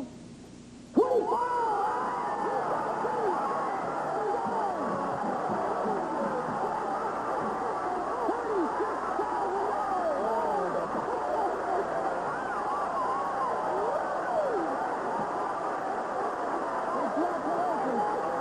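Men and women cheer and shout excitedly.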